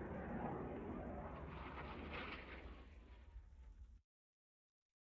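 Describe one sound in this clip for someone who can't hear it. Water laps and splashes gently, with a low rumble of wind, then fades away.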